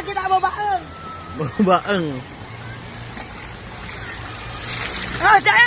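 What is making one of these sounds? A stream flows and babbles.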